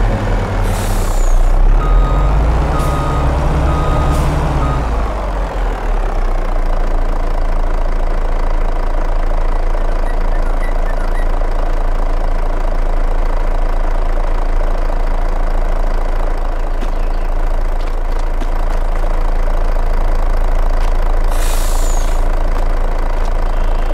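A truck engine rumbles and revs, then settles to a low idle.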